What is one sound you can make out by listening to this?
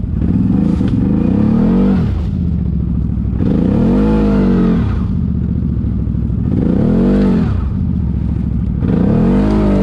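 An all-terrain vehicle's engine rumbles and revs up and down repeatedly.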